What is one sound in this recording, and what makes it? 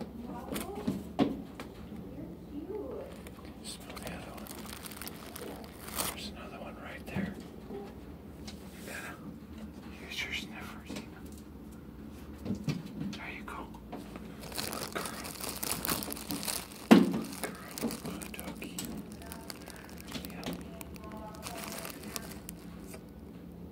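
A dog's claws scrabble and tap on a hard floor.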